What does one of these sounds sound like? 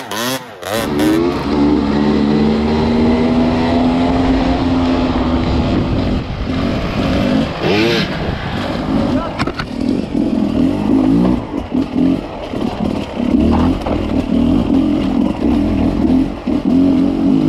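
A dirt bike engine drones steadily up close while riding.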